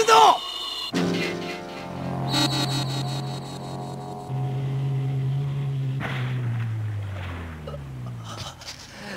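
A high electronic tone hums and slowly falls in pitch before fading away.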